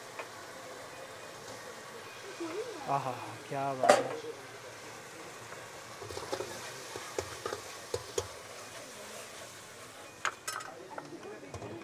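A metal ladle clinks and scrapes against a wok.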